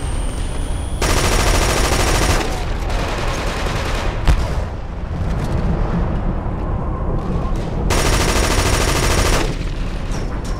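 A rifle fires loud rapid bursts close by.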